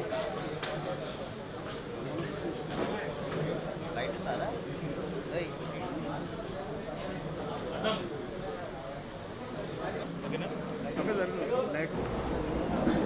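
Men murmur and talk quietly among themselves close by.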